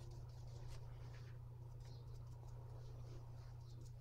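A brush dabs and swishes softly on paper.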